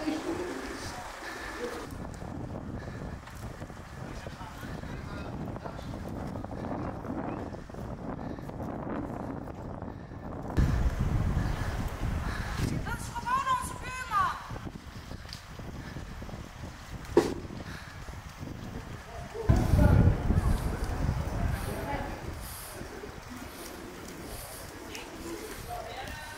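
Men talk calmly nearby outdoors.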